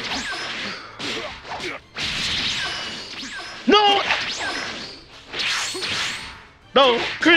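Energy blasts whoosh and roar in bursts.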